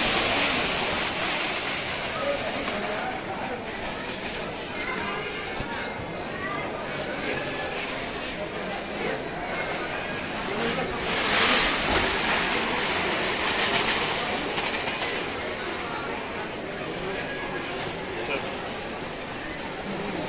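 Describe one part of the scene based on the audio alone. Several men talk among themselves nearby.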